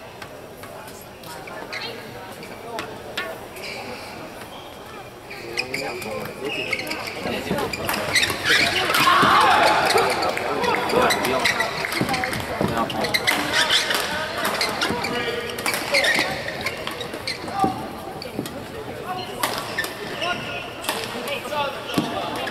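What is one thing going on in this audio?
Shuttlecocks are struck sharply by rackets in a quick rally.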